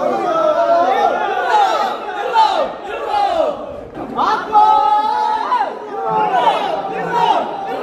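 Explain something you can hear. A group of young men cheer and shout together outdoors.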